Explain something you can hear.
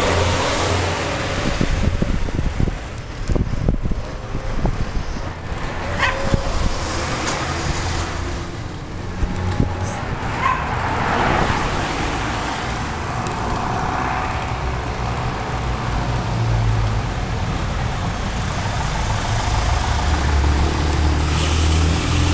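Wind rumbles steadily across a microphone outdoors.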